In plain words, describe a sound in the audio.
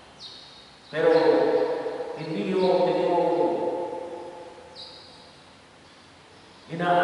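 A man chants slowly through a loudspeaker in a large echoing hall.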